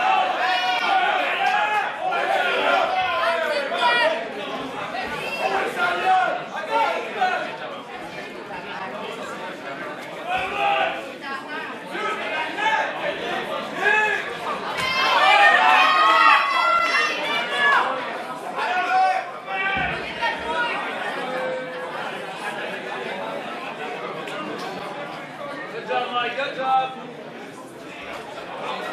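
A crowd of spectators shouts and cheers in a large room.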